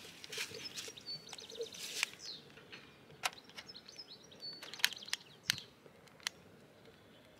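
A gas lighter clicks several times.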